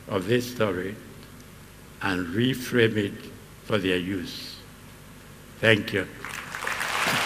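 An elderly man speaks slowly through a microphone, with pauses.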